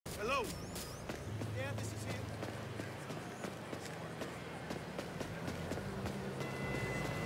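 Footsteps tap on a concrete pavement.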